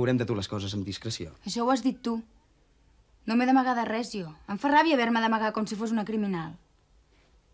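A young woman and a man talk close by.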